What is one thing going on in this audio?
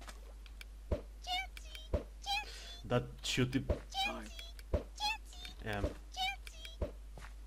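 A small creature gives short, high chirping cries again and again.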